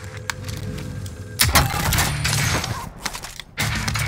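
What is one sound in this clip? A crate lid opens with a clunk.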